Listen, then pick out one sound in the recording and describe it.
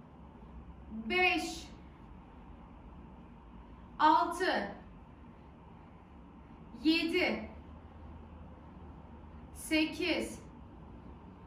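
A young woman speaks short phrases calmly and close by, every few seconds.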